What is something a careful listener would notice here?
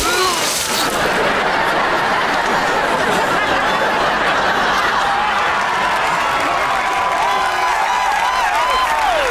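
A crowd cheers and screams loudly.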